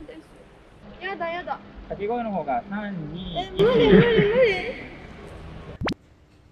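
A young woman shouts in protest, loud and upset.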